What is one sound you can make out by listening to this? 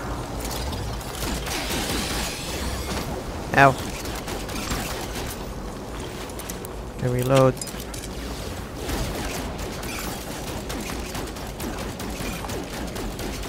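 A laser gun fires in rapid bursts of zaps.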